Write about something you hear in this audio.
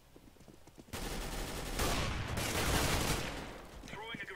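Rapid gunshots crack loudly.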